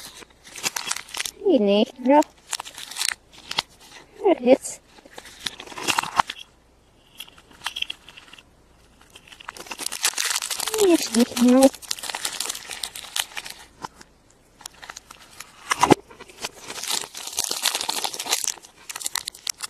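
Foil wrappers crinkle and rustle as they are peeled off.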